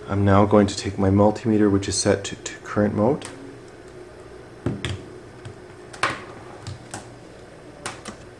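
A multimeter's dial clicks as it is turned.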